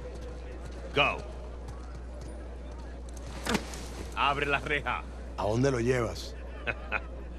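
A man speaks briefly and laughs, close by.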